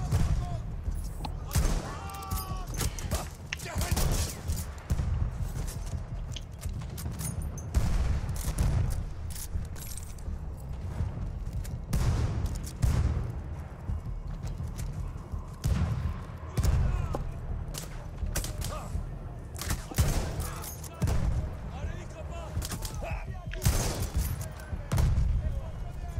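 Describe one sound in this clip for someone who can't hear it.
Rifle shots crack loudly, again and again.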